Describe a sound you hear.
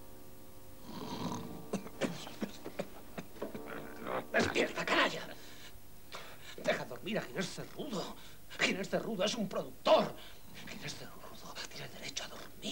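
A young man speaks urgently, close by.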